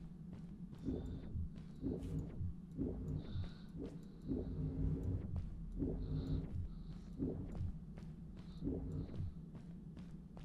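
Electric energy crackles and buzzes in short bursts.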